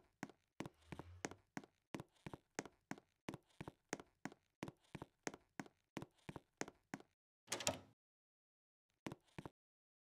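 Footsteps tap at an even pace.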